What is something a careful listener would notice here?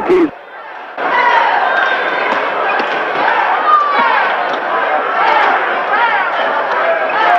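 A large crowd cheers and murmurs in an echoing gym.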